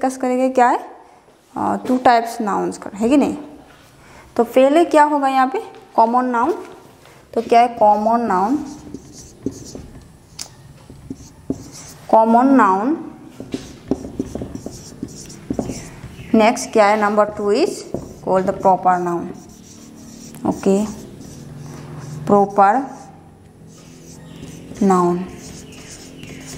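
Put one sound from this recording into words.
A young woman speaks calmly and clearly into a clip-on microphone.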